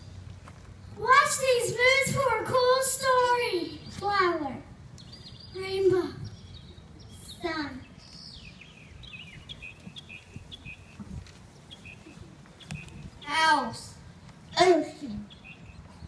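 Young girls sing through microphones outdoors.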